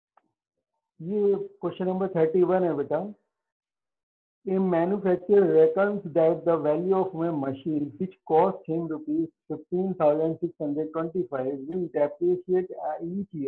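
A man speaks calmly and clearly, as if teaching, close by.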